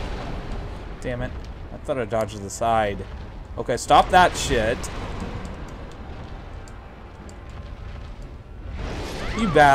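Magic bolts whoosh and shimmer.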